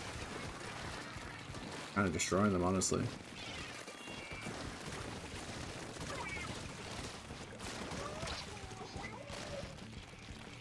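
Video game sound effects splash and pop in the background.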